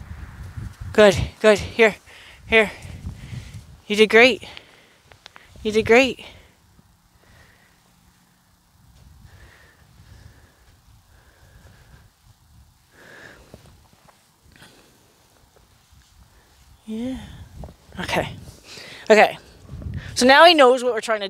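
A young woman calls out loudly to a horse outdoors.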